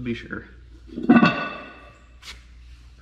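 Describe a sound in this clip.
A metal wheel hub clunks down onto a concrete floor and rings briefly.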